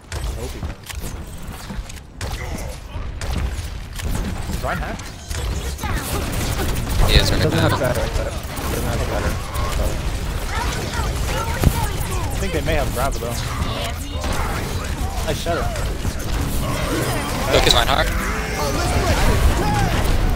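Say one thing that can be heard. A video game energy beam hums and crackles as it fires.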